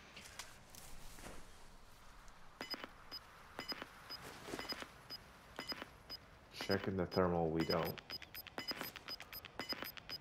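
Footsteps rustle through dry brush.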